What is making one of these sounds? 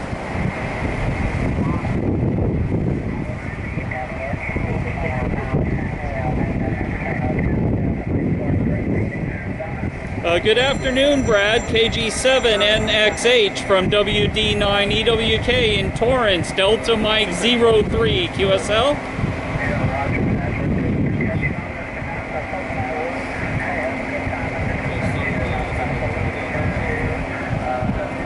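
Wind rumbles across the microphone.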